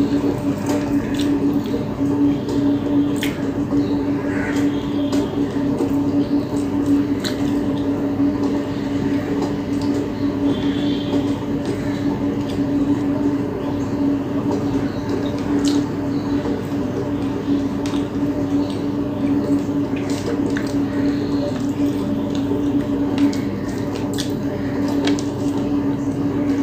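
Fingers pick apart fried fish on a plate.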